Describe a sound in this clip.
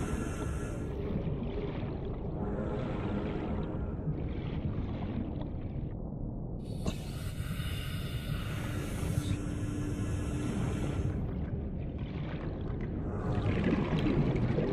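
Water swirls and rumbles low as a diver swims underwater.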